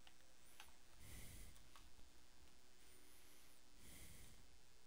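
Dirt crunches as a block is dug away.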